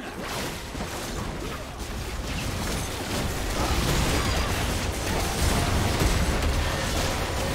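Magic spells crackle and boom in a game battle.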